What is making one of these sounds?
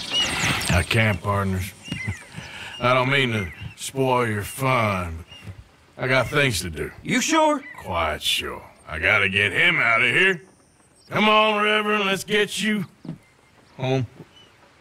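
A man answers in a low, gravelly voice.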